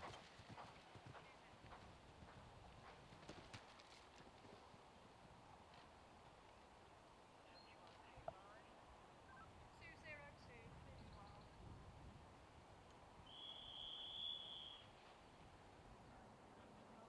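A horse's hooves thud on grass as it canters.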